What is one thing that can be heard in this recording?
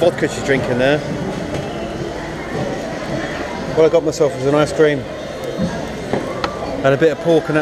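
A crowd chatters in the background of a busy room.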